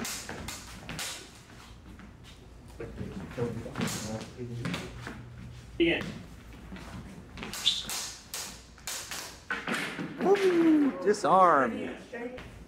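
Footsteps squeak and thud on a hard floor.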